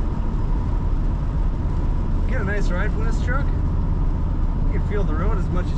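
Tyres hum on a paved road.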